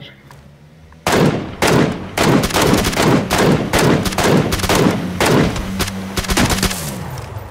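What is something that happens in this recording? Rifle shots crack rapidly, one after another.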